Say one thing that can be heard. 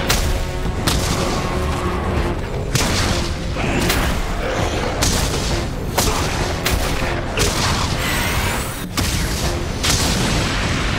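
Heavy blows and crashes thunder as two giants fight.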